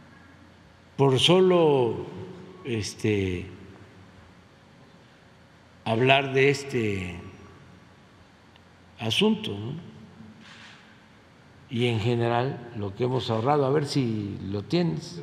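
An elderly man speaks in bursts through a microphone in a large echoing hall.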